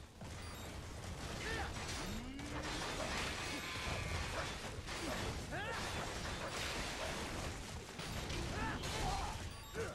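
Heavy impacts boom and crash.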